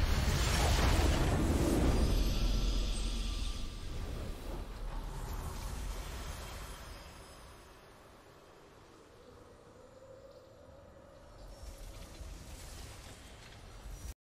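A triumphant game fanfare plays and slowly fades.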